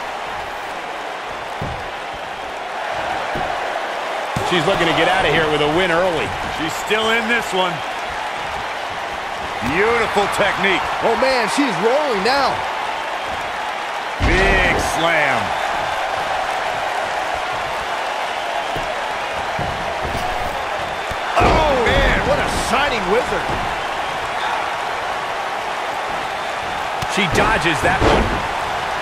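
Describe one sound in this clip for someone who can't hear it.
A crowd cheers and murmurs steadily in a large arena.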